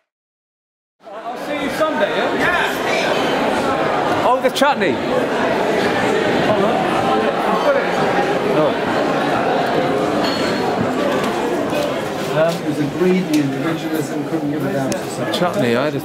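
A crowd chatters loudly all around.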